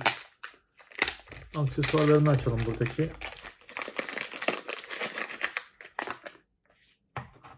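Small plastic parts click and rattle in hands.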